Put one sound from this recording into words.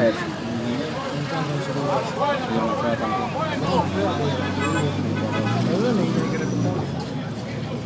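Several young men sing loudly together, close by.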